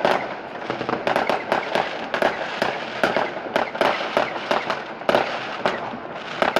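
Fireworks bang and crackle again and again, near and far, outdoors.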